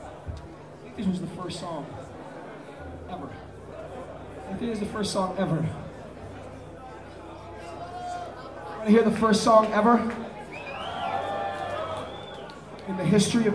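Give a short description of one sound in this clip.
A man talks loudly into a microphone over loudspeakers in an echoing hall.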